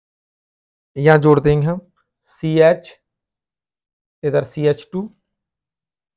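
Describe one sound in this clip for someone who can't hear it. A man explains calmly, close to a microphone.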